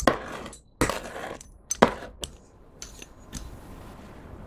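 A pizza cutter rolls through soft slime.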